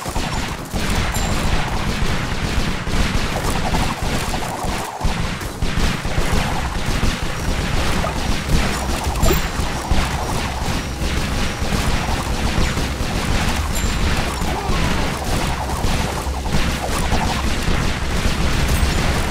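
Guns fire in rapid bursts, with many quick shots crackling over one another.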